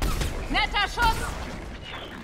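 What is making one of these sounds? A sniper rifle fires a sharp shot.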